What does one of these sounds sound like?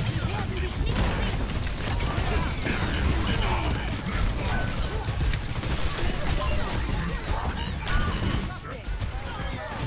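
Rapid gunfire and blasts crackle from a video game.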